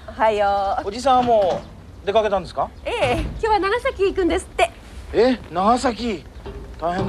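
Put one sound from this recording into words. A boy talks cheerfully nearby.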